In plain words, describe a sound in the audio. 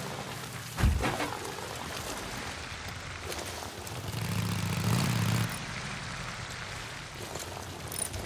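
A motorcycle engine rumbles and revs up as it rides along.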